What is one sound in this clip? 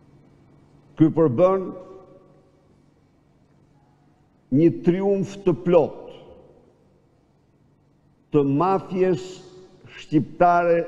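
An elderly man speaks forcefully into a microphone in short bursts, with pauses between them, in a room with some echo.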